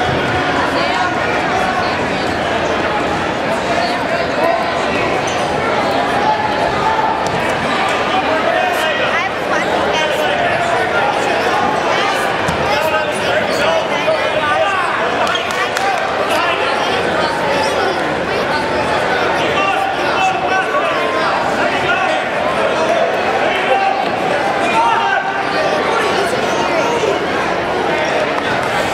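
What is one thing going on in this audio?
A crowd of spectators chatters and calls out throughout, echoing in a large hall.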